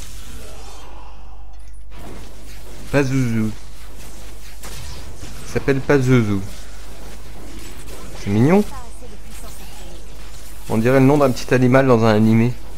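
Magic spells crackle and blast during a fight.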